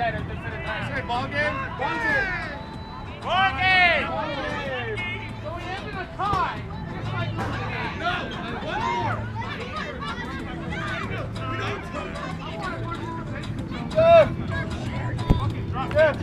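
A crowd of children and adults cheers and shouts outdoors.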